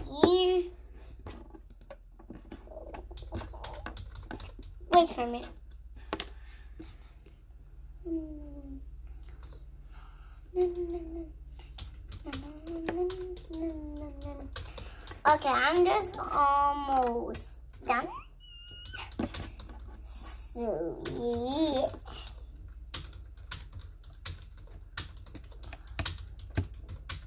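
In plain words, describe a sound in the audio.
Jigsaw puzzle pieces click and tap on a table.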